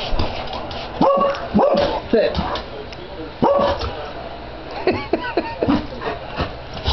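A dog howls and whines in short, rising and falling cries.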